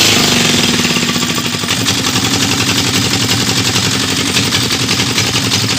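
A log splitter engine runs with a steady rapid throb.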